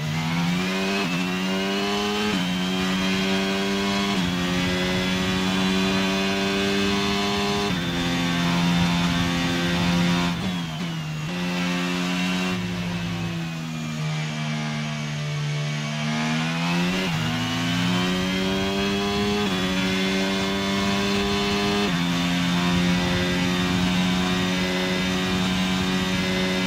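A Formula 1 car engine screams at high revs in a racing game, shifting up through the gears.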